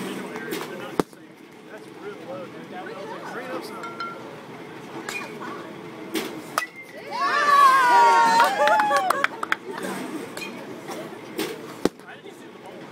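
A metal bat cracks against a baseball.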